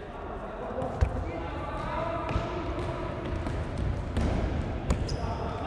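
A ball is kicked with a sharp thud in an echoing hall.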